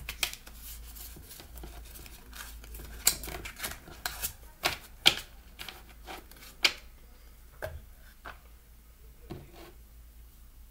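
Paper cards rustle and tap softly on a wooden table.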